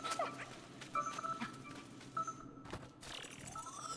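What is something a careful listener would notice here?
A light beam hums and sparkles with soft electronic tones.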